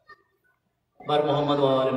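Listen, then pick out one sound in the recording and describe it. A man begins chanting loudly through a microphone.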